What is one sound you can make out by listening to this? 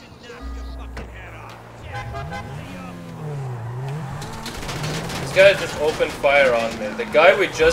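A sports car engine revs and hums.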